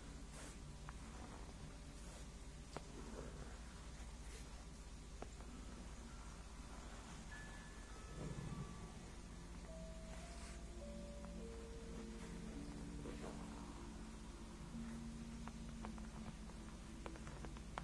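Long fingernails tap and scratch on a leather surface close to a microphone.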